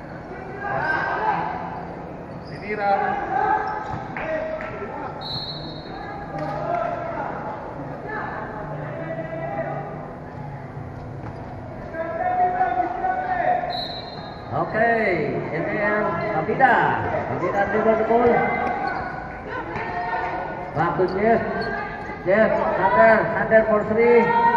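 A crowd of young spectators shouts and cheers in a large echoing hall.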